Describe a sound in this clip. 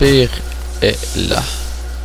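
A magical blast bursts with a sharp crackle.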